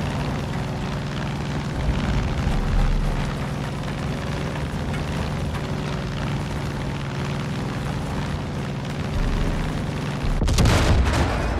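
A single-engine propeller plane drones in flight.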